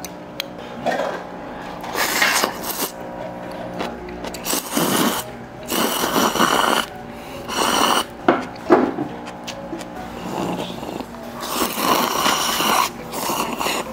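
A young man slurps noodles loudly, close by.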